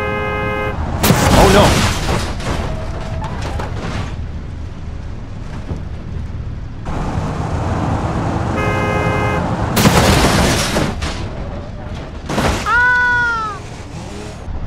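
A car crashes with a loud bang and crunching metal.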